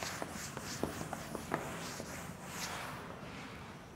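A cloth wipes across a chalkboard with a soft rubbing.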